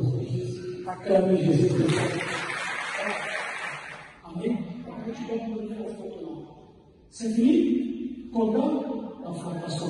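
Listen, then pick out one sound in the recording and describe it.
A man speaks into a microphone, asking questions.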